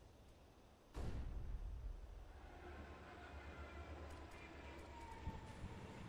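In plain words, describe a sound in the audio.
A smoke grenade bursts with a loud hiss.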